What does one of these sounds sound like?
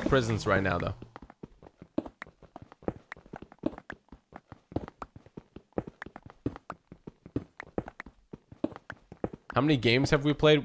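Blocks break with rapid crunching clicks in a game.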